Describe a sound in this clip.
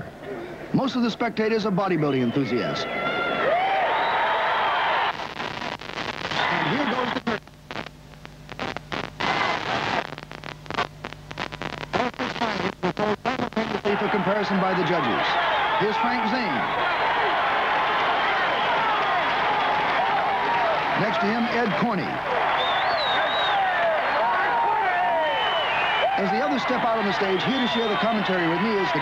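A large crowd cheers and shouts loudly in a big hall.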